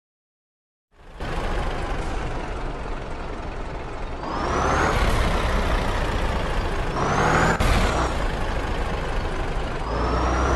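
A truck engine rumbles steadily and revs up now and then.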